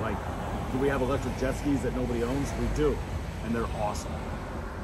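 A middle-aged man talks calmly close by.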